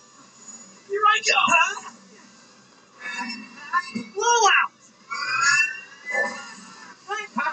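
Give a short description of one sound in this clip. Whooshing and whistling special-move effects sweep up and down.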